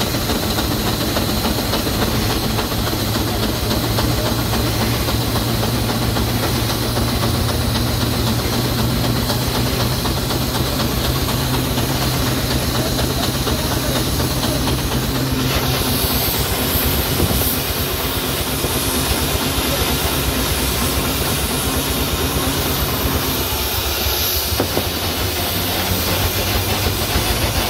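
A steam engine rumbles and chugs steadily close by.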